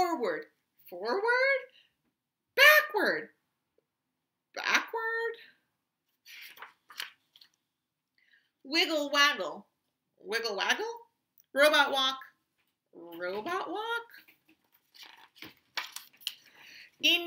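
A woman reads aloud expressively, close to the microphone.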